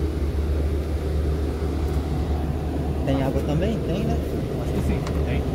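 A vehicle cabin hums with a low, steady engine drone.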